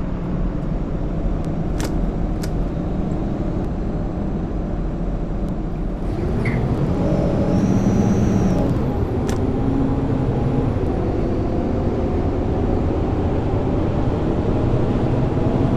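A bus engine hums steadily and rises as the bus speeds up.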